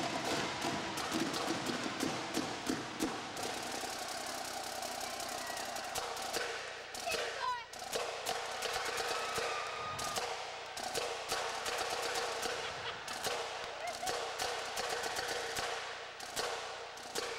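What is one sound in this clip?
Bass drums boom along.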